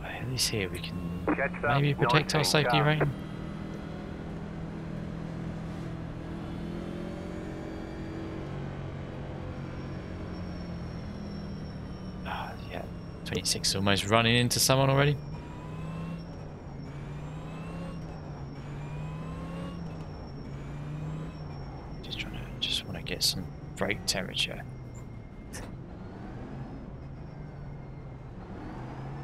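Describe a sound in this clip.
A race car engine drones steadily, shifting pitch as the car speeds up and slows down.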